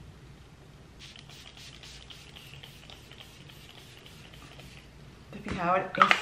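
A spray bottle mists in quick repeated hisses.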